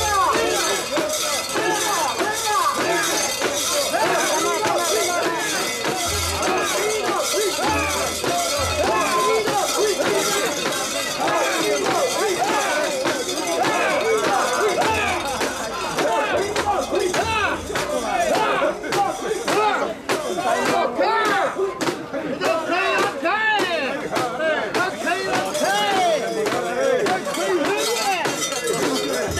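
A crowd of men and women chant and shout loudly and rhythmically close by.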